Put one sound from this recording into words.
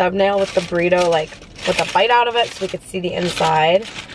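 Paper wrapping rustles.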